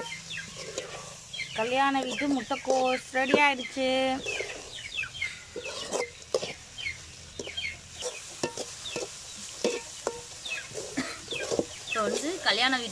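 A metal spatula scrapes and clinks against a metal pan.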